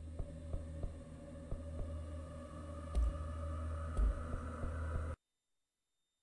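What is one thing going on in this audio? A low steady hum of game music plays, then cuts off abruptly.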